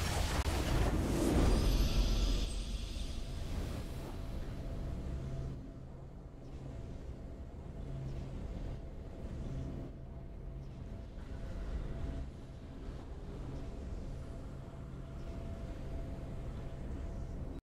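A triumphant victory tune plays softly.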